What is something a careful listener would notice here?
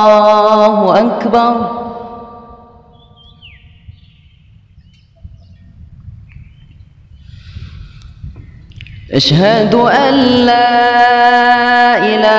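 A man chants a long, drawn-out melodic call with a loud, echoing voice.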